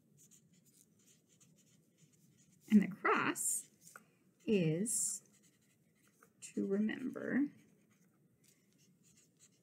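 A felt-tip marker squeaks and scratches faintly across paper.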